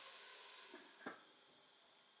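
A metal lid clanks onto a pan.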